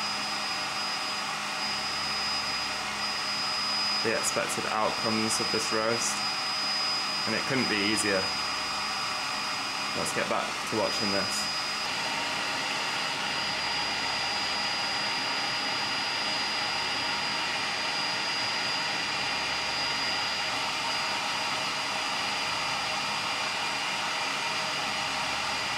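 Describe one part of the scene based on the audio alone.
A coffee roaster whirs steadily.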